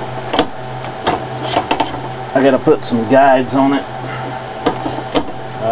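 Tools knock and clatter against one another.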